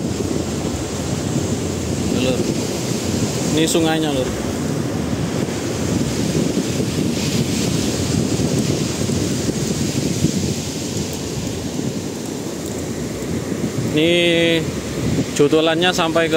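Shallow water ripples and flows steadily outdoors.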